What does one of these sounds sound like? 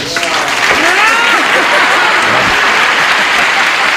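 A woman laughs with delight.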